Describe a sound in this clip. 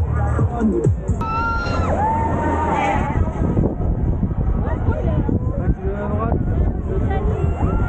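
A crowd of spectators cheers and shouts close by, outdoors.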